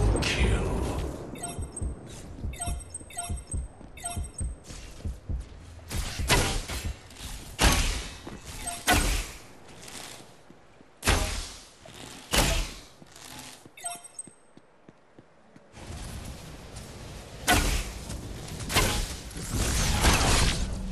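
Energy weapons fire in sharp, repeated bursts.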